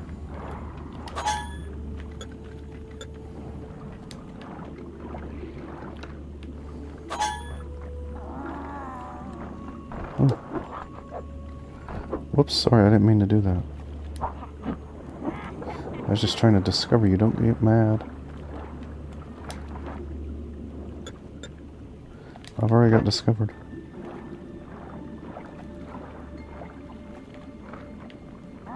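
A low underwater rumble hums steadily throughout.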